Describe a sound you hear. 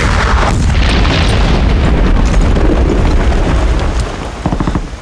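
Loud explosions boom and rumble nearby.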